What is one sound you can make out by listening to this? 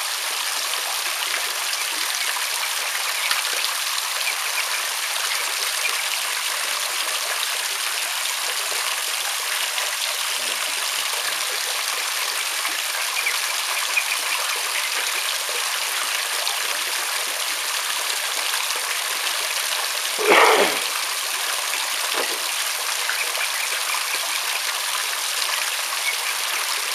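Water pours and splashes steadily into a tub of water.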